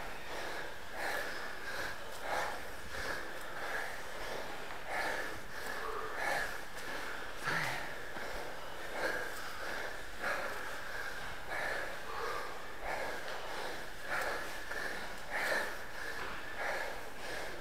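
Footsteps climb stairs at a steady pace, with a slight echo.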